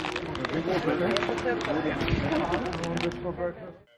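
A plastic bag of sweets crinkles close by.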